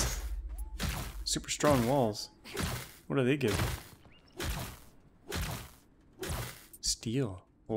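Blows land with sharp, repeated impacts in a fight.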